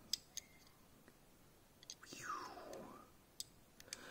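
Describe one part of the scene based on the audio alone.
A small plastic toy car clicks softly between fingers.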